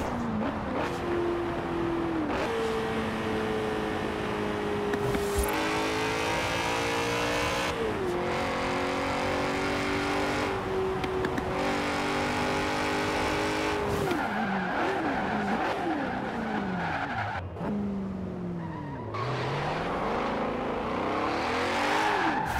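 A car engine roars at high speed, shifting through gears.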